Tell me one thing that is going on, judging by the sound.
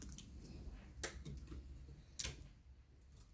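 Tape tears off a dispenser with a sharp snap.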